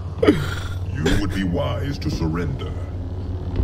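A man speaks in a slow, deep voice.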